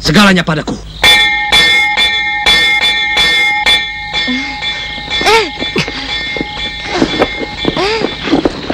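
A large bell rings with a long, steady ringing.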